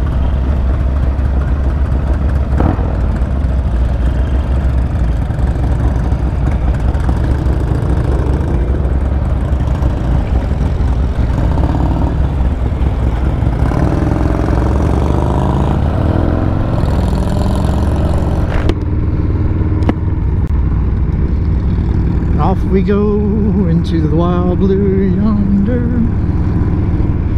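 A motorcycle engine rumbles steadily up close as it rides along.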